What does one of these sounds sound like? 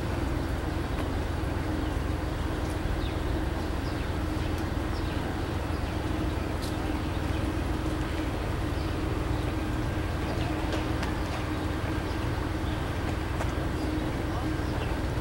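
A passenger train rolls past close by with a steady rumble.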